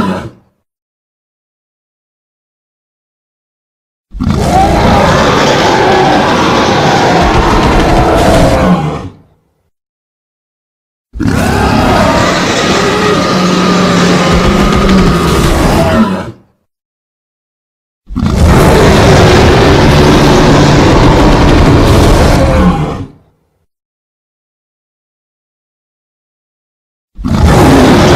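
A gorilla roars loudly in long bursts.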